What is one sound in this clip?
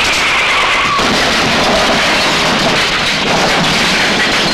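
A car flips and crashes with a loud metallic impact.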